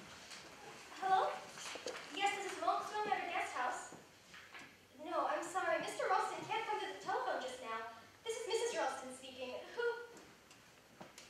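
A young woman speaks with expression in an echoing hall.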